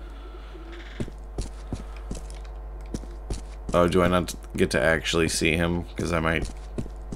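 Footsteps thud softly on carpet at a steady walking pace.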